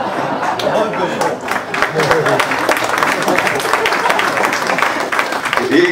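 A man laughs into a microphone.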